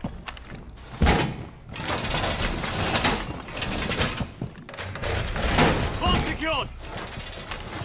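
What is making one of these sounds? Heavy metal panels clank and thud as they lock into place.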